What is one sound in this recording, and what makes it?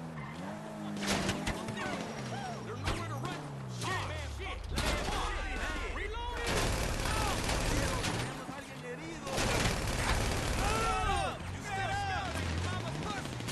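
Tyres screech on asphalt as a car skids.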